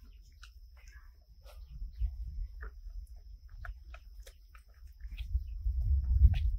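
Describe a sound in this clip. Monkeys chew and smack their lips while eating fruit.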